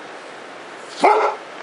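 A dog gives a short whine close by.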